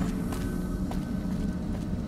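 A person gulps water from a canteen.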